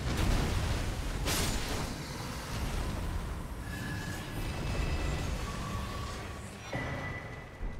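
A huge beast collapses with a deep, heavy rumble.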